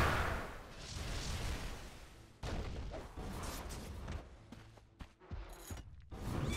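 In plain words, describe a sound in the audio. Game sound effects crackle and whoosh.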